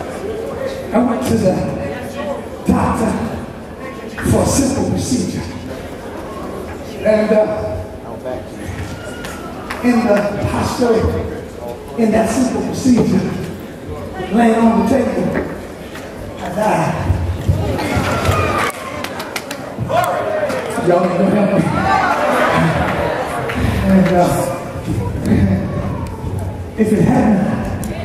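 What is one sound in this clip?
A man sings and preaches with passion through a microphone and loudspeakers in a large echoing hall.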